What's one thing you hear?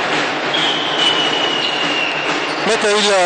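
A referee's whistle blows a long, steady blast.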